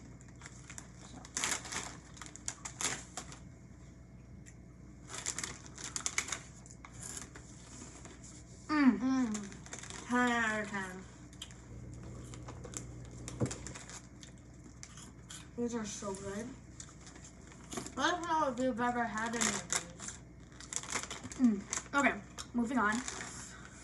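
A crisp bag crinkles and rustles.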